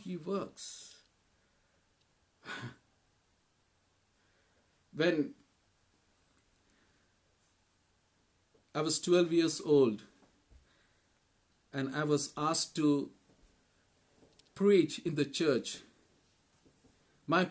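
A man speaks calmly in short bursts, close to a microphone, as if on an online call.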